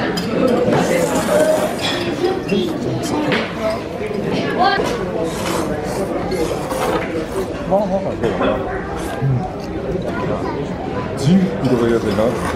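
Men slurp noodles loudly, close by.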